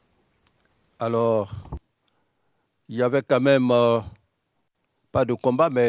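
A man answers in a deep voice through a microphone.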